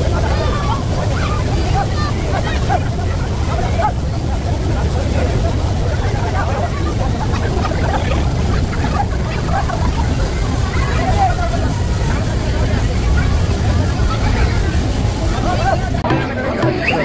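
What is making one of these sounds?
Children shout and laugh while playing outdoors.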